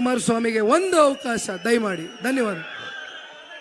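A man speaks loudly and forcefully into a microphone over loudspeakers.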